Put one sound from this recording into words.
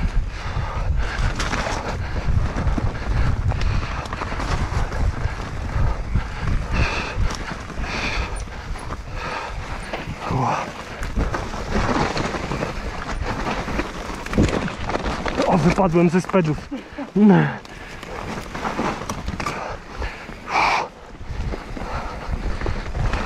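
A bicycle rattles and clatters over bumps and roots.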